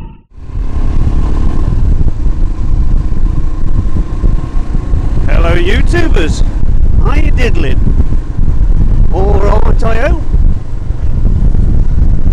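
Wind buffets a microphone with a heavy, constant rumble.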